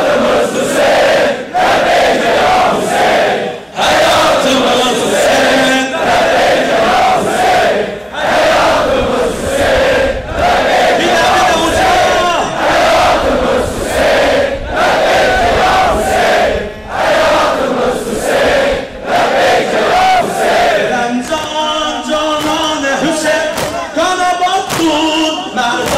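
A large crowd chants loudly together in a steady rhythm outdoors.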